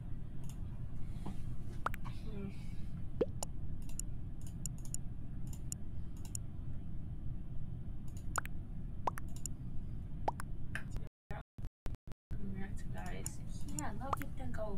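A young woman talks casually and close to a microphone.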